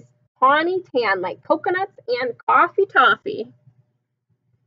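A young woman reads aloud with animation, close to the microphone.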